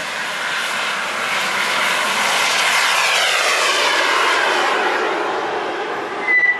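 A model jet engine whines loudly as it rushes past, its pitch dropping.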